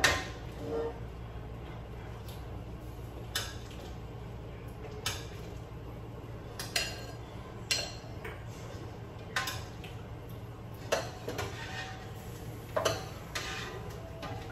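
A metal spoon clinks and scrapes against a pot.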